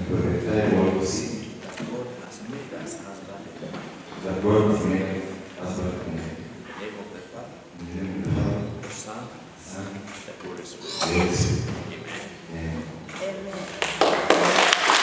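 A man speaks into a microphone over loudspeakers, calmly and with pauses.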